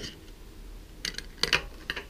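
A metal part clinks against something hard.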